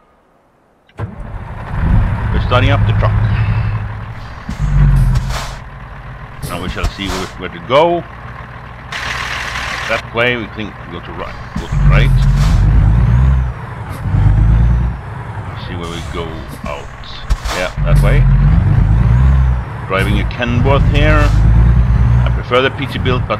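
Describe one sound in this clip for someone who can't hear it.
A truck's diesel engine idles with a deep, steady rumble.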